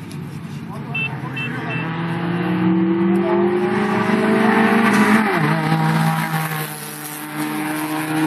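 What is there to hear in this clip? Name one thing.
A car engine roars loudly as a car speeds past close by.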